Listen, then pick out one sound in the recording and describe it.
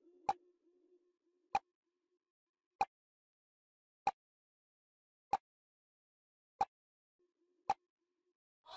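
A countdown timer ticks about once a second.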